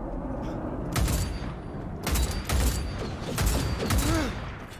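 Rapid gunshots ring out close by.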